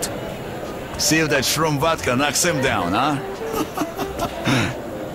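An older man talks and laughs heartily.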